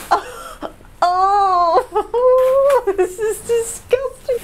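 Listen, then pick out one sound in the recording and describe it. A woman laughs loudly nearby.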